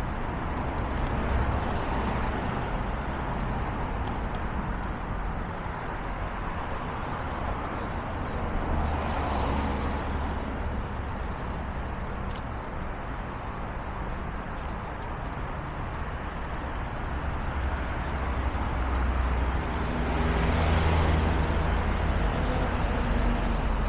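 Cars drive past on a nearby street.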